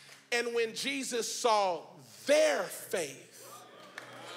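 A man shouts excitedly into a microphone in a large hall.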